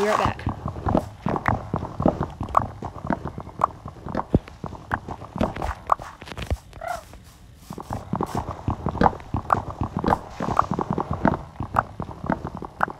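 Blocks break with quick, repeated crunching thuds.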